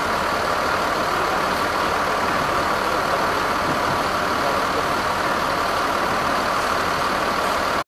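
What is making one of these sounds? A large bus engine idles with a steady rumble close by.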